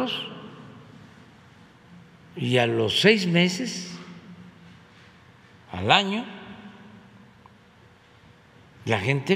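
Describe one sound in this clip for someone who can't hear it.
An elderly man speaks with animation into a microphone, in short bursts with pauses, in a reverberant room.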